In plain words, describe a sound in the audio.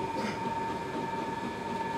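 A knife scrapes fruit into a plastic bottle.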